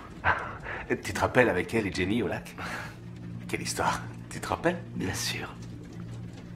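Another man laughs nearby.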